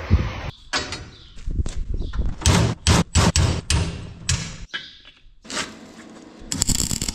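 A hammer strikes metal with sharp knocks.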